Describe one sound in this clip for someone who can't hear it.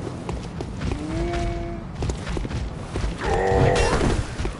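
A large beast snarls and roars.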